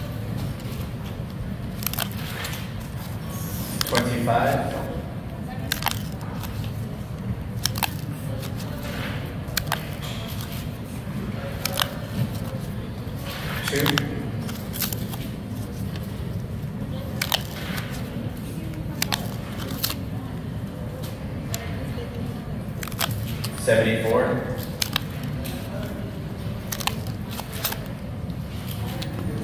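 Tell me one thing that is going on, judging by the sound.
Paper tickets rustle and flick as hands leaf through a stack.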